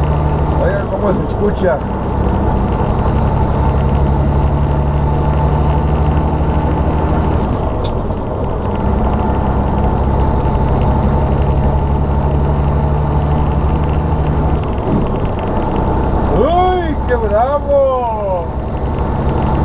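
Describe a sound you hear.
A truck's diesel engine drones steadily as it drives.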